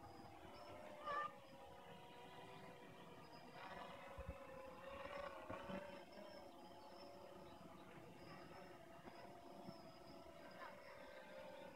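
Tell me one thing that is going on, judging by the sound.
A drone's rotors whine steadily overhead.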